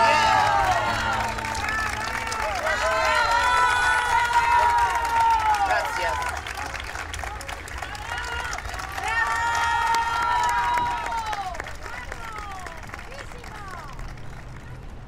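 A crowd claps along outdoors.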